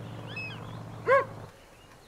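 A dog gives a short, high yelp.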